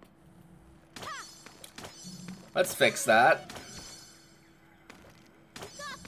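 Short chimes and whooshes of a video game battle play.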